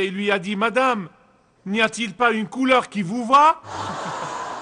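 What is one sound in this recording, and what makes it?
A man speaks animatedly into a microphone.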